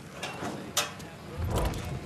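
A door creaks open.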